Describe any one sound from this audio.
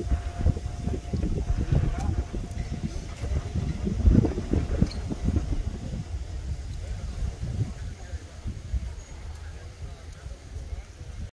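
Wind blusters loudly outdoors.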